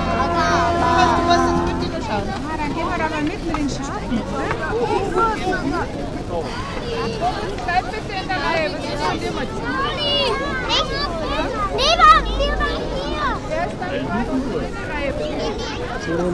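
Children chatter and call out excitedly close by.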